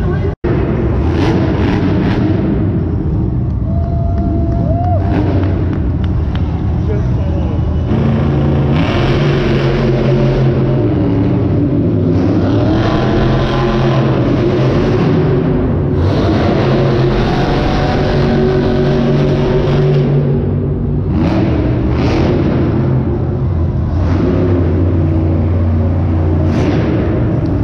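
Monster truck engines roar and rev loudly in a large echoing arena.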